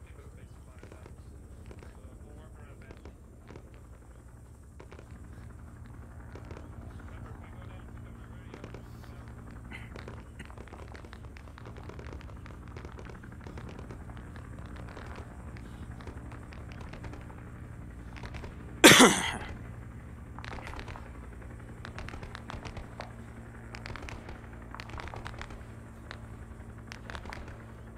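Footsteps crunch steadily on dry dirt.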